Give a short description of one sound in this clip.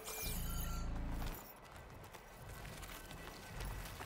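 Leaves rustle as a figure pushes through dense plants.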